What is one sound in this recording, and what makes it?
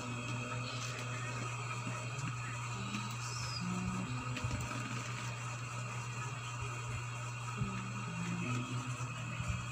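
A child taps on a laptop keyboard.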